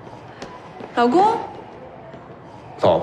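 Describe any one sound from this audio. A young woman laughs and speaks brightly.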